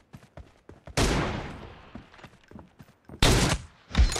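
Loud gunshots bang and echo.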